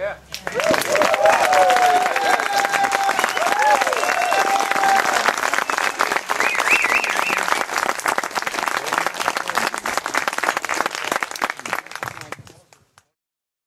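An audience applauds and cheers outdoors.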